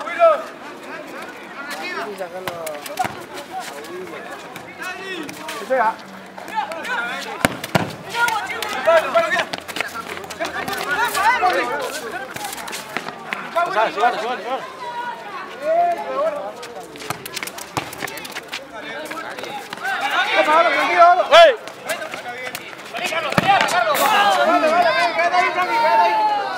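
A crowd of young men and women shouts and cheers outdoors.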